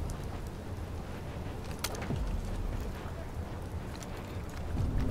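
Boots clank on metal ladder rungs.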